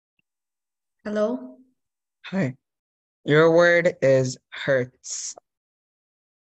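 A boy speaks briefly over an online call.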